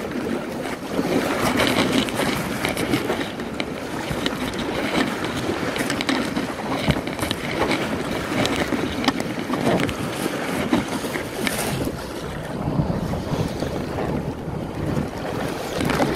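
Wind roars and buffets loudly outdoors.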